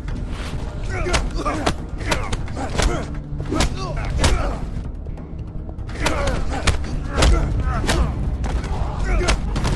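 A man grunts and cries out with effort.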